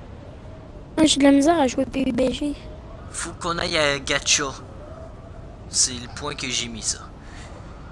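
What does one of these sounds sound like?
A young man talks with animation into a microphone, close by.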